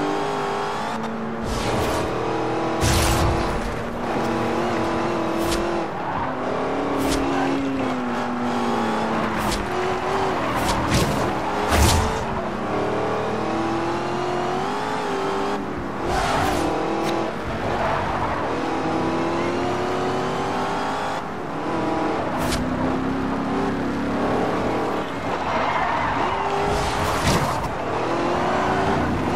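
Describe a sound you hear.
A sports car engine roars loudly, its pitch rising and dropping as it shifts gears.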